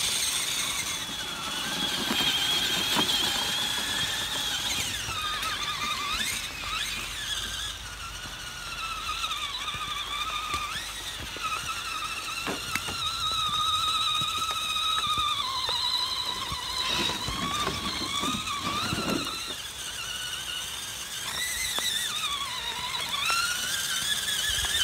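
Small electric motors whine, rising and falling in pitch as toy trucks crawl.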